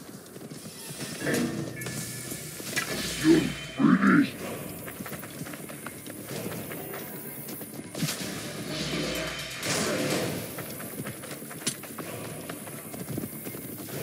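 Blades clash and swish in a fight.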